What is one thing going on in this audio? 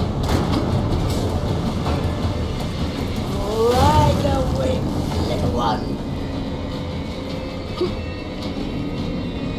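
A magical portal hums with a deep, steady roar.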